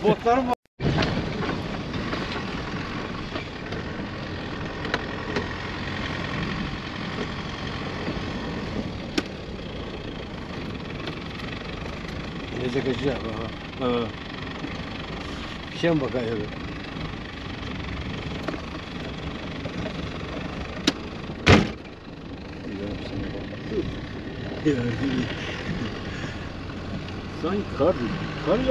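Tyres crunch and bump over packed snow.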